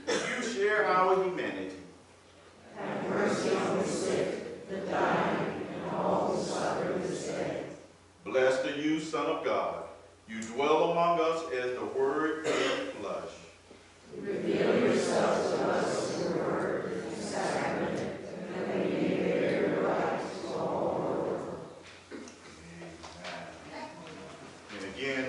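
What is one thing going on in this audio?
A man reads aloud calmly into a microphone in an echoing room.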